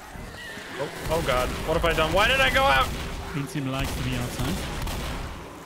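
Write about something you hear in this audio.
Gunfire bursts rapidly and loudly.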